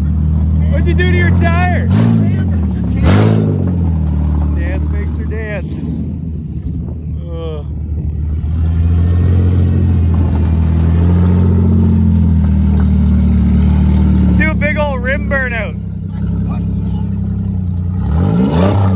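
A car engine idles and revs roughly throughout.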